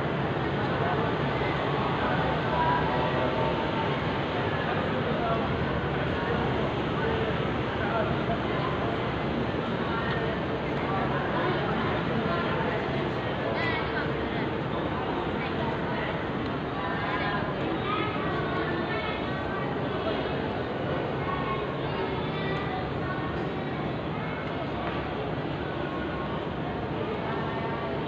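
Many people murmur and talk in a large echoing hall.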